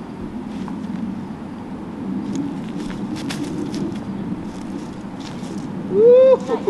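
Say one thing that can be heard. Footsteps crunch through dry leaves and grass.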